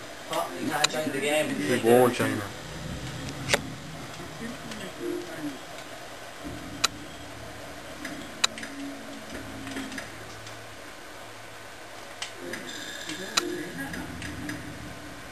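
Video game sounds play from a television speaker.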